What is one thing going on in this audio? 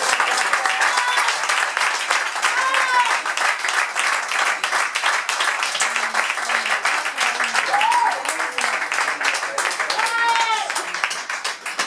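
A woman whoops and shouts with excitement.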